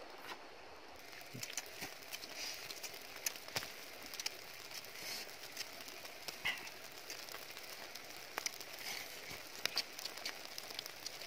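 Embers crackle and pop in a wood fire.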